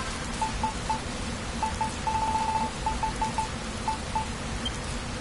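Short electronic beeps tick quickly as a game menu cursor moves.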